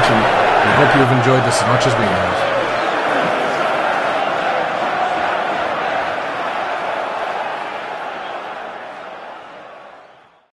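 A crowd applauds loudly in a large hall and slowly fades away.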